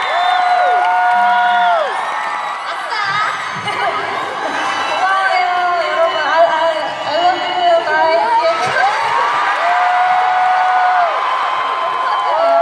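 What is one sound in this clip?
A crowd of fans screams and cheers loudly.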